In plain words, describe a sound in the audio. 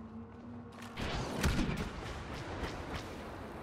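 A lightsaber hums and clashes.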